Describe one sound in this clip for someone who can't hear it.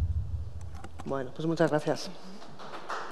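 A woman speaks briefly into a microphone in a large room.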